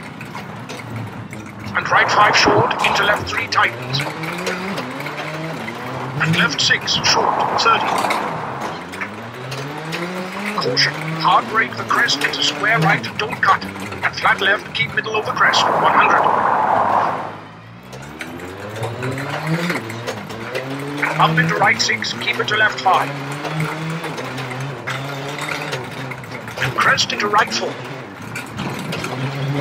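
A rally car engine revs hard, rising and falling with each gear change.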